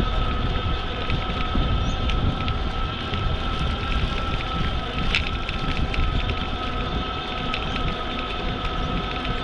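Wind rumbles loudly against a moving bicycle.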